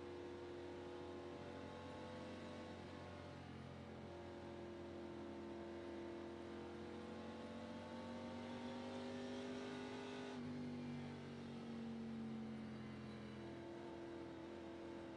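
A race car engine drones steadily at low speed, its pitch slowly rising and falling.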